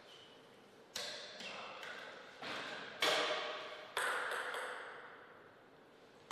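A table tennis ball bounces a few times on the table before a serve.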